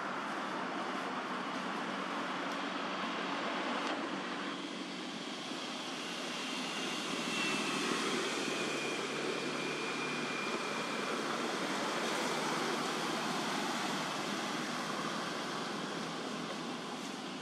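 A monkey's feet rustle through dry leaves on the ground.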